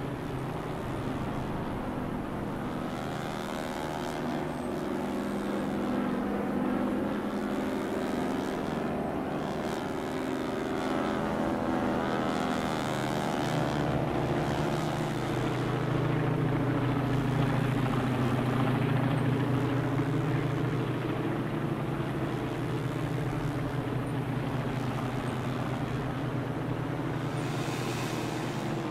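A small propeller plane's engine drones steadily, its pitch shifting slightly.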